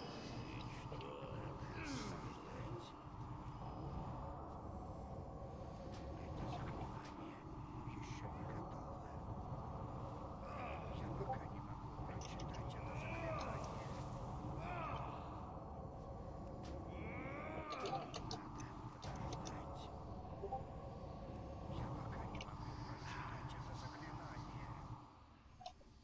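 Spells whoosh and crackle as fantasy warriors battle.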